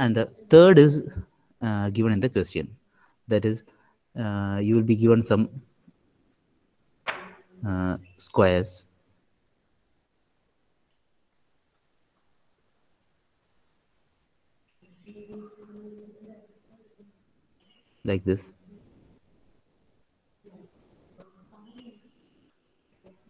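A man speaks calmly into a microphone, heard through an online call.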